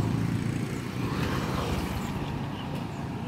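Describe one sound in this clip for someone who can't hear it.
A small motorcycle passes close by.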